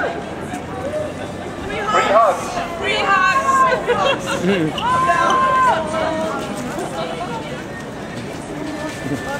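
A crowd of young people shouts and chants loudly outdoors.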